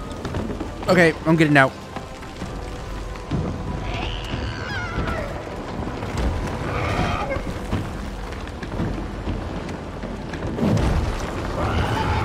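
Small footsteps patter quickly across a wooden floor.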